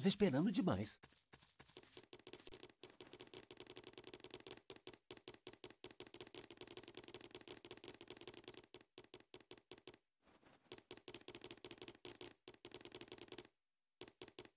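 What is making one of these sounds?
Light footsteps patter quickly on grass.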